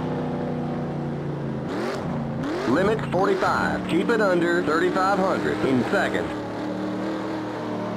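A race car engine drones steadily at low speed.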